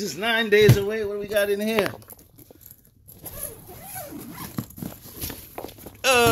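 A zipper rasps open along a suitcase.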